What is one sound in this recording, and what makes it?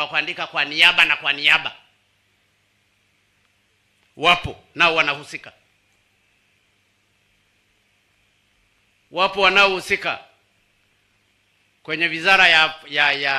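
A man speaks forcefully into a microphone through loudspeakers, with long pauses.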